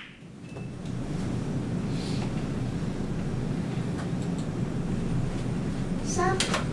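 A ventilation fan hums steadily.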